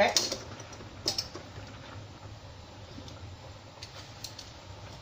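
A spoon scrapes and clinks against a glass pot.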